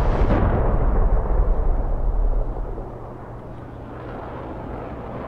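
Explosions boom and rumble deeply, then fade into a low roll.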